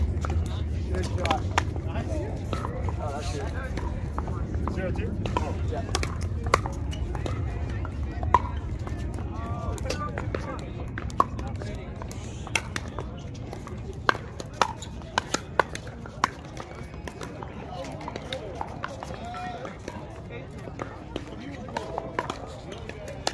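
Pickleball paddles hit a plastic ball with sharp pops.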